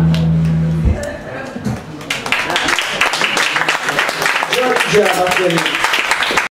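A bass guitar plays.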